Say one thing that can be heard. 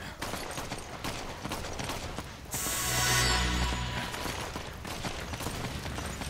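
Footsteps run quickly over dirt.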